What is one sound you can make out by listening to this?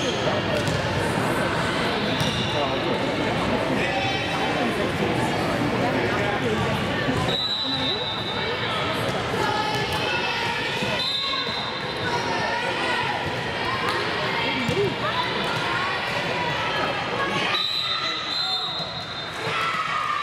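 Many voices chatter and call out in a large echoing gym.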